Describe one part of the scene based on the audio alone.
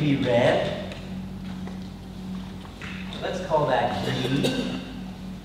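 A man speaks clearly nearby in a large echoing hall.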